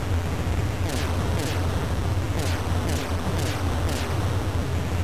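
Retro video game explosions burst in quick succession.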